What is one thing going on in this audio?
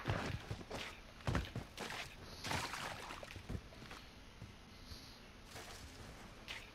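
Footsteps thud and scrape over rough ground.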